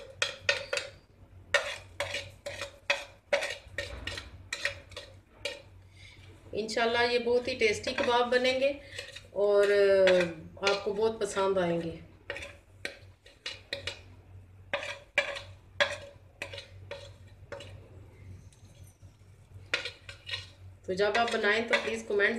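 A metal spoon clinks and scrapes against a plate.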